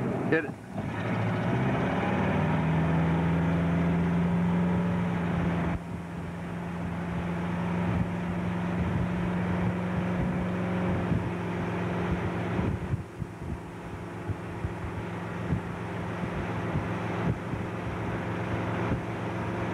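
A motorboat engine drones steadily close by.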